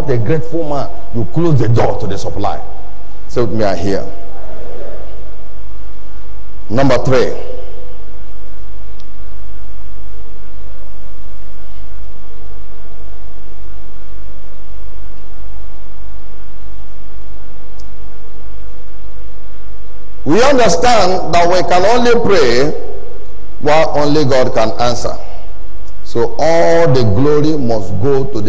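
A man preaches with animation through a microphone, with long pauses between phrases.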